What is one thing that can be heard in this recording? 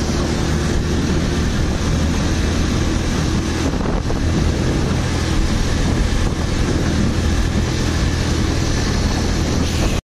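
Tyres hum on a paved road.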